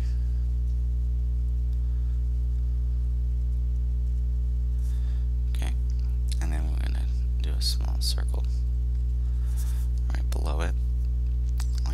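A pen scratches lightly on paper.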